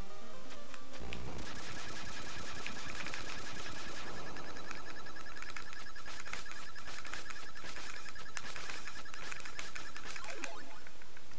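Chiptune game music plays steadily.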